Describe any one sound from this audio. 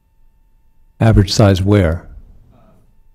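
A man speaks briefly into a microphone in a large hall.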